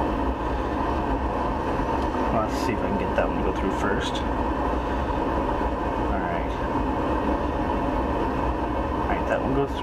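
Fingers scrape faintly against small metal parts close up.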